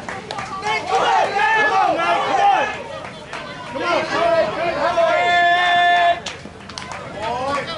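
Men and women shout and call out loudly outdoors.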